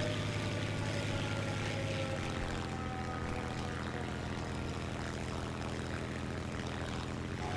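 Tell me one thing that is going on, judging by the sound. A propeller engine drones steadily, its pitch shifting slightly as the plane manoeuvres.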